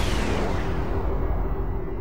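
A laser beam fires with a humming zap.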